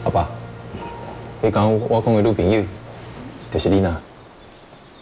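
A young man speaks calmly and close by.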